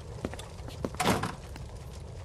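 A golf club taps a ball.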